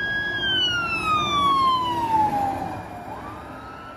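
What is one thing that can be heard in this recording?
A fire truck's engine rumbles as it drives past.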